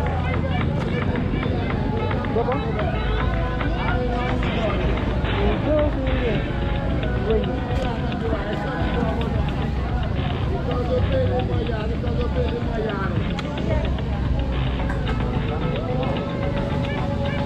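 A crowd chatters all around outdoors.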